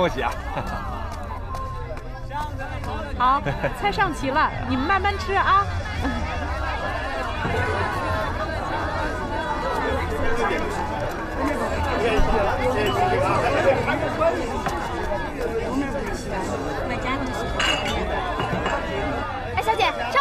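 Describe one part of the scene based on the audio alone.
A crowd of people chatters throughout.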